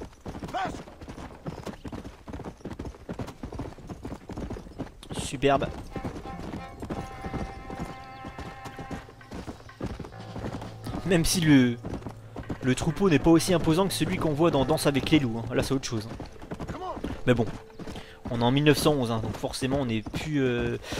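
Horse hooves pound rapidly on dry ground at a gallop.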